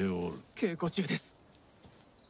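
A young man speaks quietly and briefly.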